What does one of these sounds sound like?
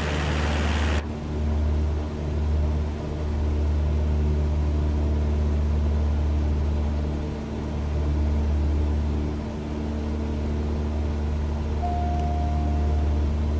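A small propeller plane's engine hums steadily, muffled from inside the cabin.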